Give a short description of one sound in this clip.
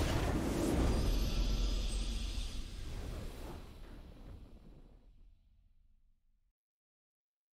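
A triumphant victory fanfare swells and fades out.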